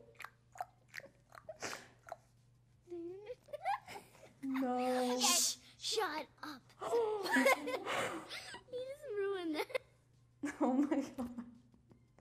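A teenage girl laughs and talks close by.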